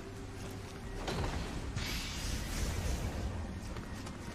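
A bright magical shimmer rings out and fades.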